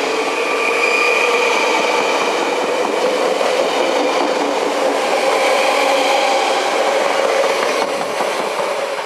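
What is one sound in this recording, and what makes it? An electric train rolls past close by with a loud, whining motor.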